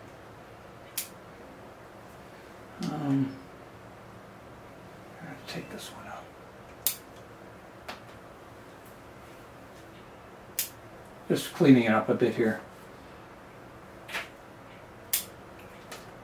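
Small pruning shears snip twigs with sharp clicks.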